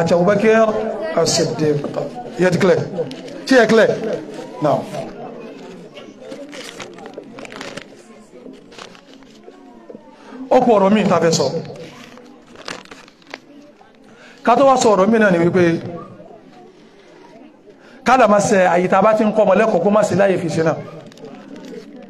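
A man speaks loudly and with animation into a microphone, close by.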